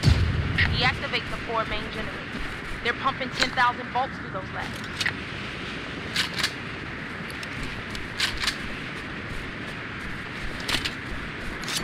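Metallic clicks sound as a gun is switched and readied.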